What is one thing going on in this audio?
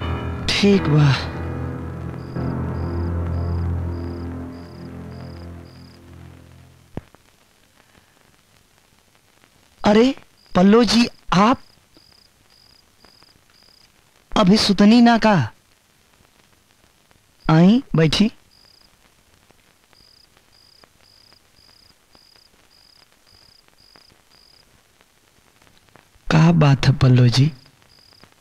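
A man speaks calmly and close by, in short phrases.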